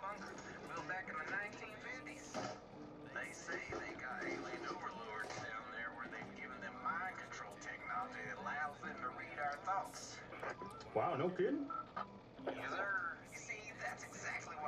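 A man speaks through a radio.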